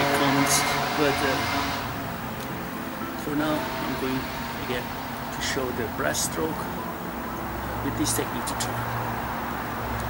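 A man speaks nearby outdoors.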